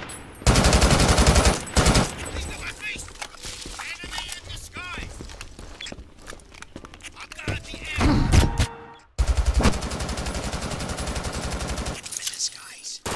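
A rifle fires rapid bursts of loud gunshots.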